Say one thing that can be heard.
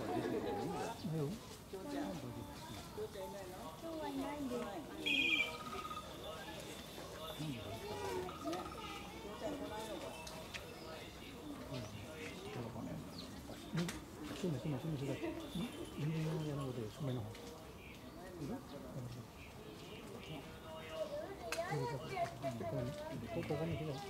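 A crowd of men and women murmur and chatter nearby outdoors.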